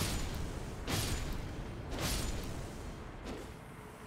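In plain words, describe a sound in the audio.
A sword strikes hollow metal pots with sharp clangs.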